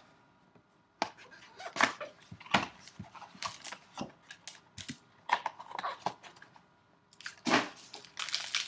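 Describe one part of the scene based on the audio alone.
Cardboard packaging scrapes and knocks as it is handled.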